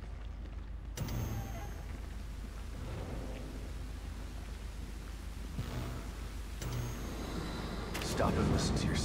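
A television hisses with static.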